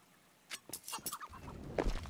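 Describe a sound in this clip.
A knife is drawn with a short metallic swish.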